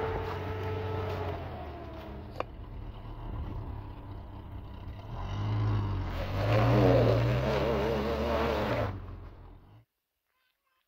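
A truck engine revs.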